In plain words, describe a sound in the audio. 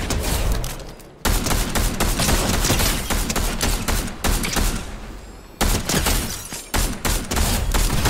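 A scoped rifle fires sharp shots.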